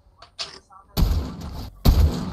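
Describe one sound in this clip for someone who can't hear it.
A sniper rifle fires loud shots.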